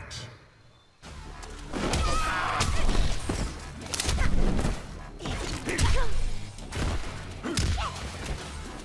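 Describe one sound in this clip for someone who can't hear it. Blows land hard and fast in a fight.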